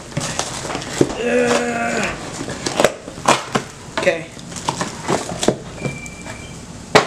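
Cardboard rustles and scrapes as a box is torn open.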